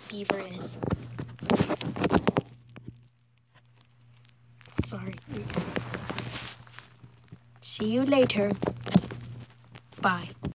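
A young boy talks with animation close to the microphone.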